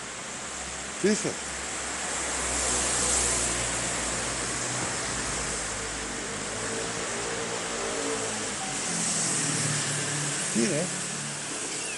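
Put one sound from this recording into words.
A cat meows loudly close by.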